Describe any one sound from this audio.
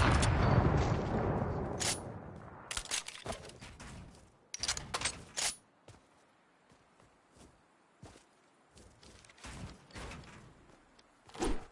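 Building pieces in a video game snap into place with quick clicks and thuds.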